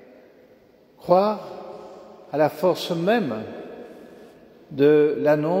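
An elderly man speaks slowly through a microphone in a large echoing hall.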